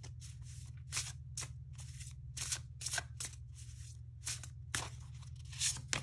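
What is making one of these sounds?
Cards shuffle and flick with crisp, papery rustles and snaps.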